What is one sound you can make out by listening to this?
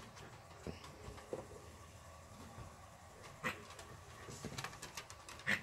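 A person's footsteps patter on a wooden deck.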